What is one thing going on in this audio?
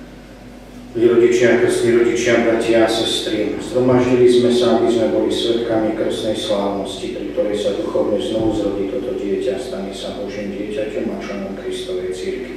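A middle-aged man chants steadily through a microphone in an echoing hall.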